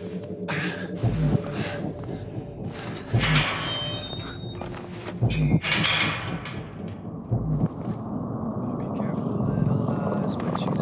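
Slow footsteps thud on a tiled floor.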